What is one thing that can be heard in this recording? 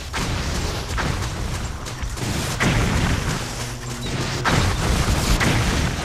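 A torrent of water roars loudly.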